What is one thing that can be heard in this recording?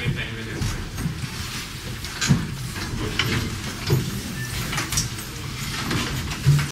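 A young man speaks, heard from a distance.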